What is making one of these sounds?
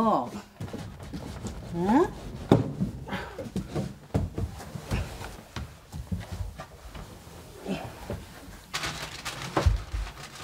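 Cloth and papers rustle as a man rummages.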